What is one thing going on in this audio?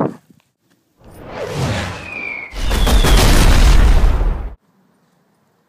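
An explosion booms with a loud roar.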